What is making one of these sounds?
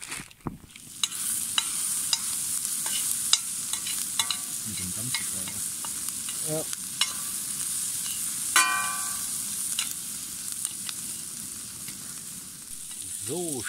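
Food sizzles loudly in a hot frying pan.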